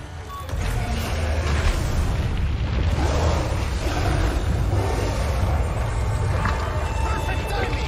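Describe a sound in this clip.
Flames roar and crackle as a fire bursts up.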